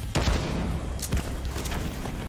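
Explosions boom and crackle close by.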